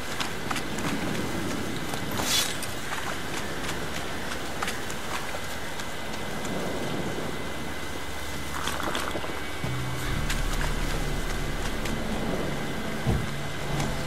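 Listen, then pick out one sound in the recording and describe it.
Footsteps crunch through grass and mud.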